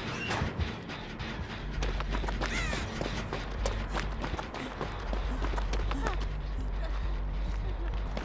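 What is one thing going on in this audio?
Footsteps run through crunchy snow and grass.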